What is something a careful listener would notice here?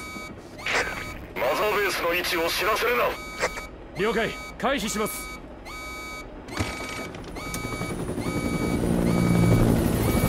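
A helicopter engine drones steadily, growing louder toward the end.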